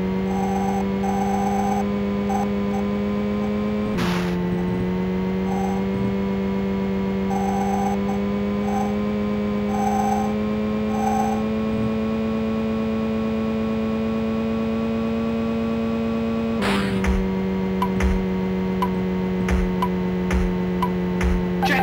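A buzzy electronic car engine drones steadily, dropping in pitch at each gear change.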